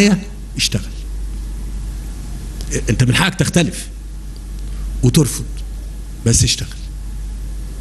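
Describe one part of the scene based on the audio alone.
A middle-aged man speaks slowly and deliberately into a microphone, with pauses between phrases.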